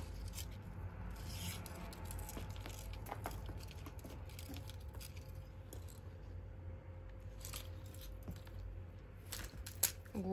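A cat bats a feather toy with soft thumps and rustles.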